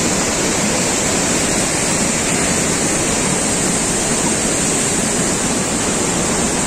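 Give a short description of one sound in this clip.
A swollen river rushes and roars loudly close by, outdoors.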